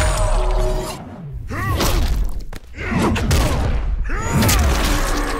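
A weapon whooshes through the air.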